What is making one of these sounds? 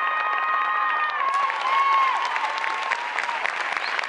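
A mandolin is strummed.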